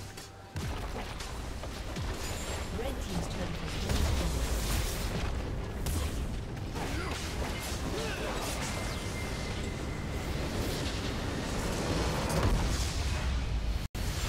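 Fantasy battle sound effects clash and crackle steadily.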